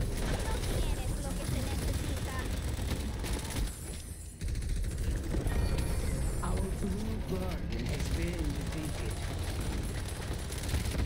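Weapons clash and fire rapidly in a hectic fight.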